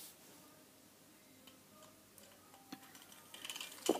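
A small plastic toy knocks softly as it is picked up and moved.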